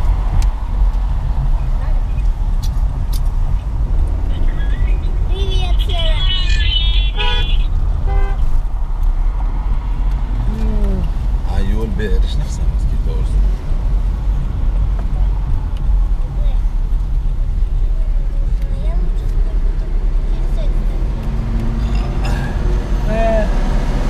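Traffic rumbles nearby.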